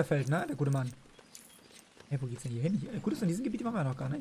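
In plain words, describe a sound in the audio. Coins jingle and clink as they are picked up.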